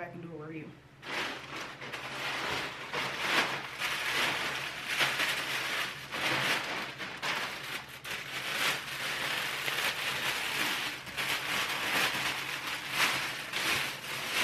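A plastic bag rustles and crinkles loudly.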